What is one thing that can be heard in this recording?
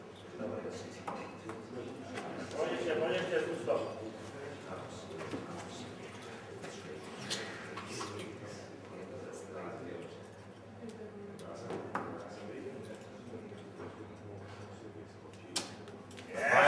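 Darts thud into a dartboard one at a time.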